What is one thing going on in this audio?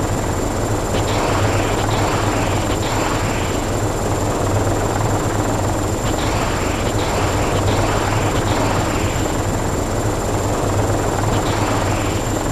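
A helicopter's cannon fires in short bursts.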